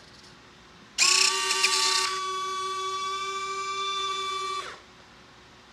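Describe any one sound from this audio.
The electric retractable landing gear of a model airplane whines as it extends.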